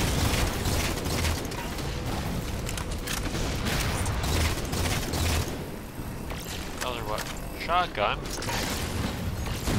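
Energy beams crackle and zap.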